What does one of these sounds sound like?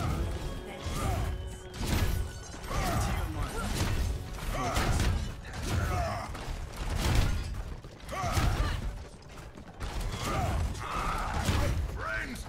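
A weapon fires a roaring blast of flame.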